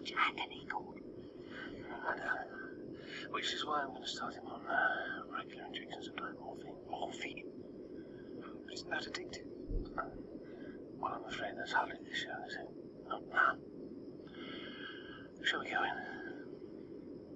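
A middle-aged man speaks calmly and seriously nearby.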